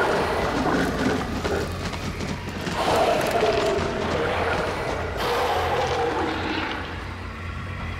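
Flames roar and crackle in a loud burst.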